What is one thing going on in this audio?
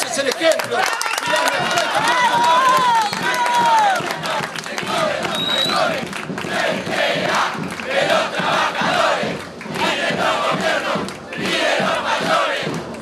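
A middle-aged man speaks loudly into a microphone over a loudspeaker, with passion.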